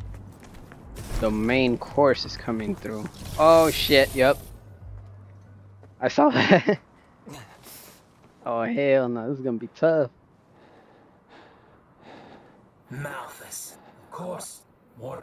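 A young man speaks in a low, calm voice.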